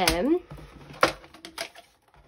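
A paper trimmer is set down on a table with a knock.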